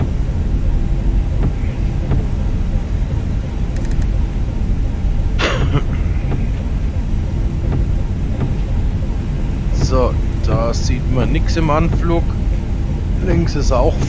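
Rain patters on a windshield.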